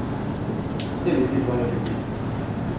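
A man speaks briefly and quietly nearby.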